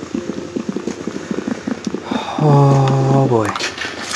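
A wooden chest breaks apart with crunching knocks.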